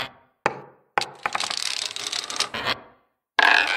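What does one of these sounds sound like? Dominoes clatter as they topple in a row.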